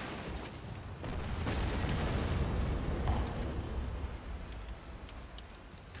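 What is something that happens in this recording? Shells burst with loud cracking explosions.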